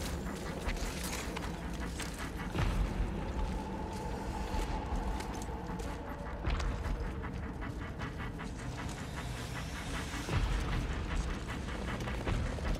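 Footsteps crunch and scrape on loose rocks close by.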